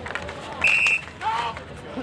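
Hockey sticks clack against each other and a ball on asphalt in a scramble at the goal.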